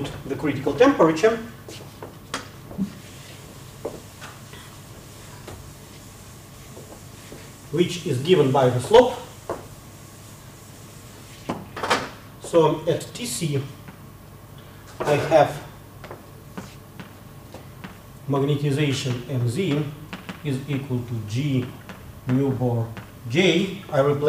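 An elderly man lectures calmly through a microphone, with pauses.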